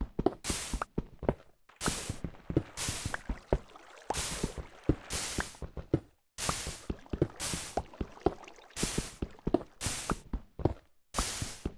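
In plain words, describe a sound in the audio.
Stone blocks crumble and break apart with a gritty crunch.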